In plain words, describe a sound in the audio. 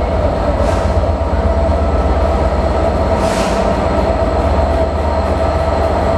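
A diesel locomotive engine rumbles loudly as it approaches.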